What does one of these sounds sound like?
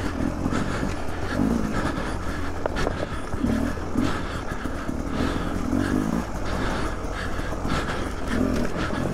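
A dirt bike engine rumbles and revs up and down close by.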